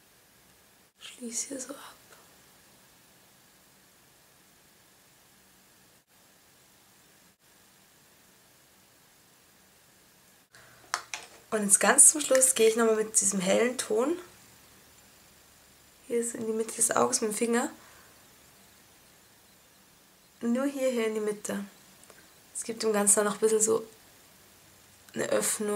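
A young woman speaks calmly, close to a microphone, in short bursts.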